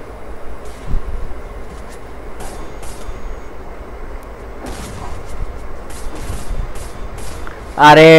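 Gunshots crack in short bursts.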